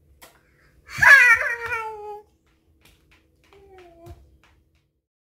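A toddler boy shouts excitedly close by.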